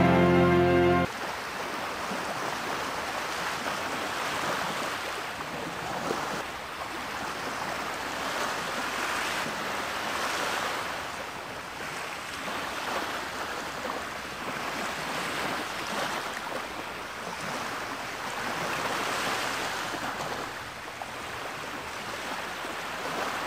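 Waves wash softly onto a shore.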